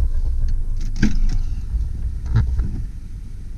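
A car door latch clicks and the door swings open.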